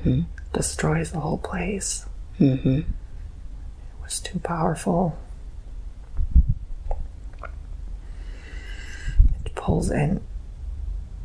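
A young man speaks slowly and drowsily, close by.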